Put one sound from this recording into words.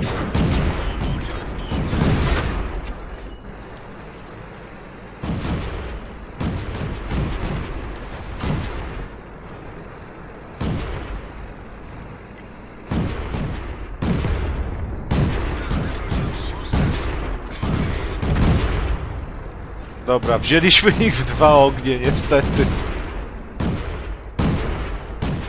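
Tank cannons fire with loud booming blasts.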